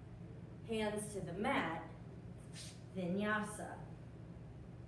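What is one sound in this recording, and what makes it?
A woman speaks calmly, giving instructions.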